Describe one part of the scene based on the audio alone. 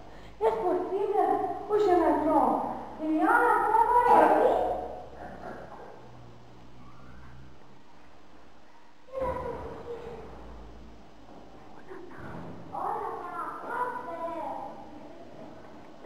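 Young children sing loudly together.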